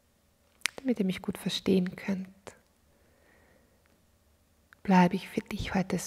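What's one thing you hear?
A woman speaks calmly and softly into a close microphone.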